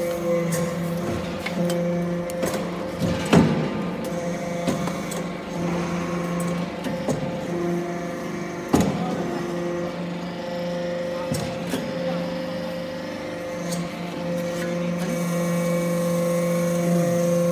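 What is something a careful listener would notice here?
Metal shavings rattle and clatter on a conveyor.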